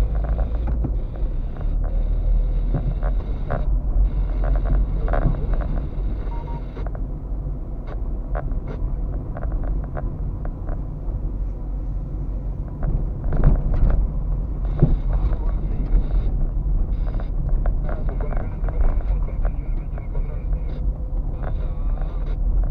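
Tyres crunch and rumble over a rough dirt road.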